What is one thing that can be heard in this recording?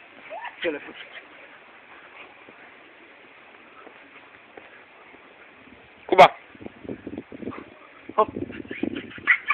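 A dog barks nearby outdoors.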